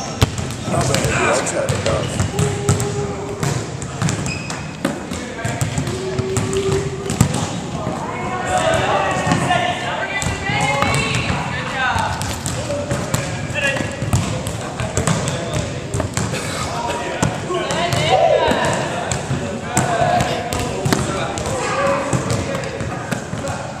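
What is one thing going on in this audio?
A volleyball is struck by hands with sharp slaps.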